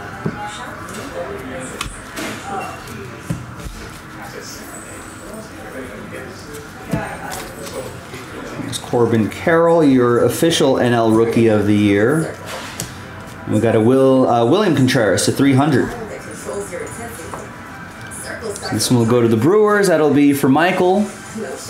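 Cards shuffle and flick against each other close by.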